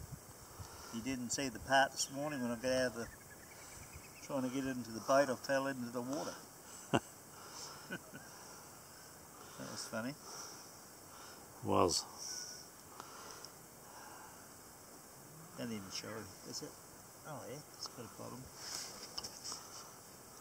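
An older man talks calmly nearby, outdoors.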